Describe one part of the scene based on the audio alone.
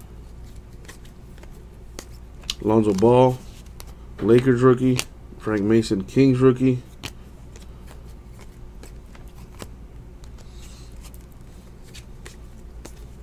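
Trading cards flick and rustle as hands sort through them.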